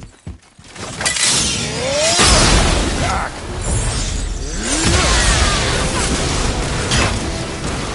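Fire roars and crackles during a fight.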